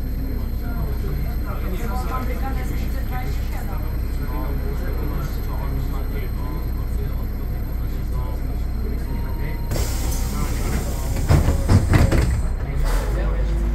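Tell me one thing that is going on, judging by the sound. A tram's motor hums low and steady while it stands still.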